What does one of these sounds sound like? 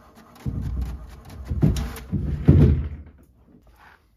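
An inkjet printer whirs and clicks as it feeds paper.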